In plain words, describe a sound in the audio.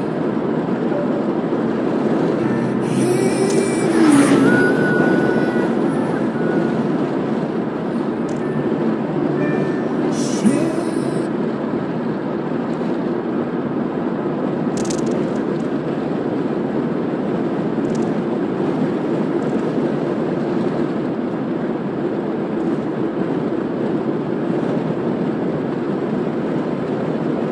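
Tyres roar steadily on a smooth road from inside a moving car.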